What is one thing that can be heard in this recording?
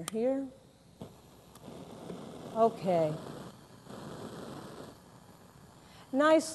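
A gas burner hisses steadily.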